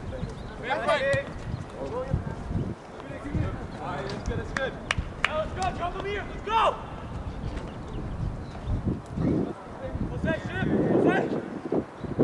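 Young women shout and call out to each other across an open field, heard from a distance.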